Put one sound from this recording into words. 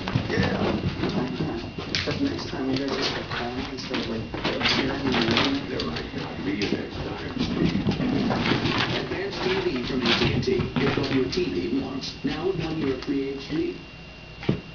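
A small dog's paws patter on carpet as it runs laps.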